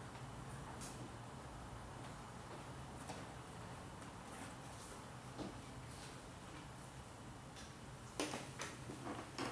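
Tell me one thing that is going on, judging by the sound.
Cats scramble and thump softly on a sofa.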